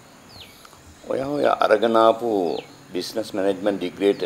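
An older man speaks slowly in a low voice nearby.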